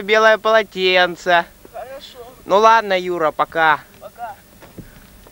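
A boy speaks loudly nearby.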